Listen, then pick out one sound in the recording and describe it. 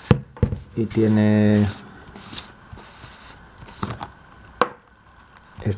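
A plastic lid is unscrewed from a bottle with soft scraping clicks.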